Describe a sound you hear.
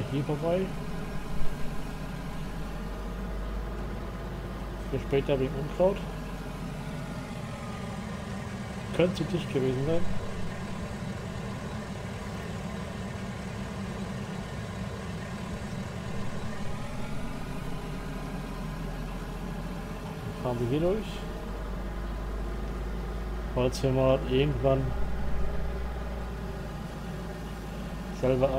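A truck engine hums steadily and its pitch rises and falls.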